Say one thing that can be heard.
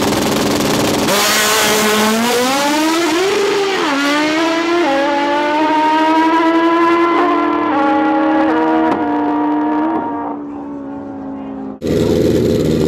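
Two drag racing motorcycles launch at full throttle and shift up through the gears as they race away.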